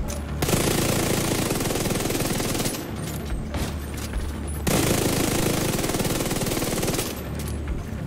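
Automatic gunfire rattles in long, rapid bursts.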